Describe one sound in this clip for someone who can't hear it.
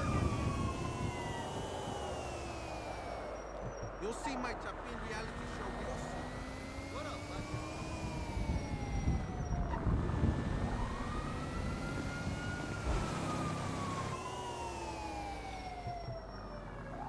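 A car engine hums and revs as the car drives along a street.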